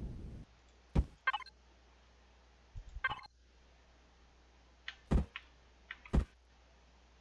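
Short game clicks sound as blocks snap into place.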